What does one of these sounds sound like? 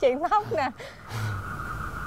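A young woman speaks playfully up close.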